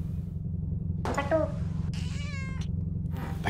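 A cat meows several times.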